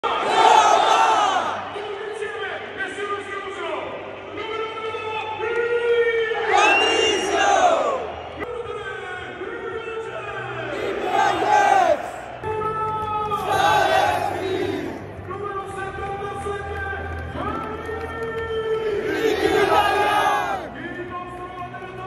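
A large stadium crowd sings a chant together, echoing across the stands.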